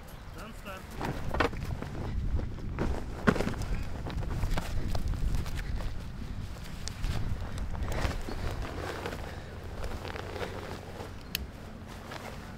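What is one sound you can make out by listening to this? Heavy fabric rustles and swishes as a girl pulls on a protective suit.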